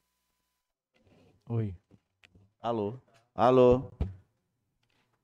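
A man speaks briefly into a microphone, calm and close.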